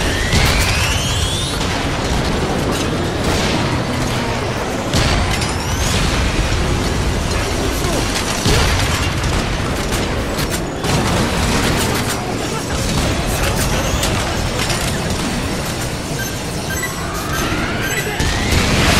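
Gunfire rattles throughout.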